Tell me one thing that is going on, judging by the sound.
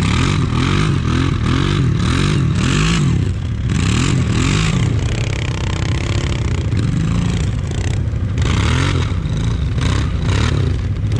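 Another quad bike engine revs nearby as it climbs a dirt slope.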